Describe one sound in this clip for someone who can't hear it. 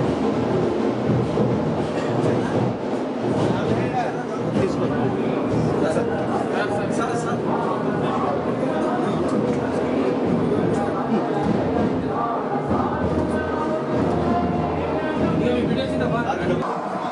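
A crowd of men chatter together indoors.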